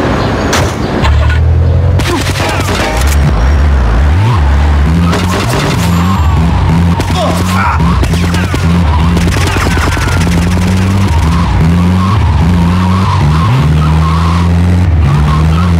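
A van engine runs and revs as it drives.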